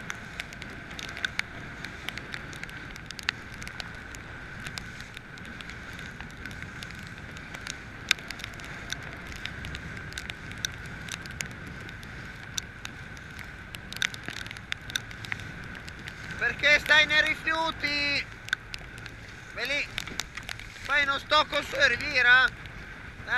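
Choppy waves slap and splash against a boat's hull.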